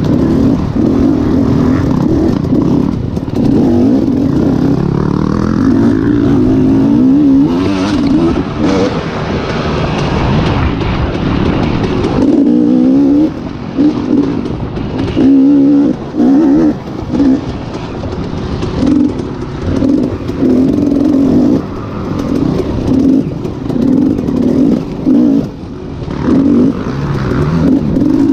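Tyres crunch over leaves and dirt.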